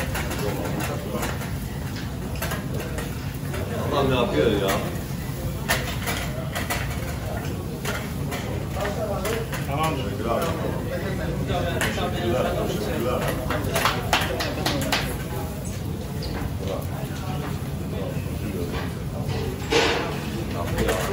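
Metal skewers clink and clatter against the grill.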